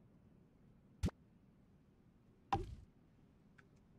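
A short game interface sound plays as a menu opens.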